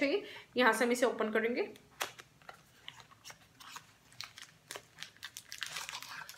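A cardboard box rustles and clicks in a woman's hands.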